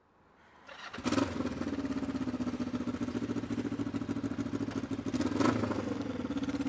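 A motorcycle engine revs briefly.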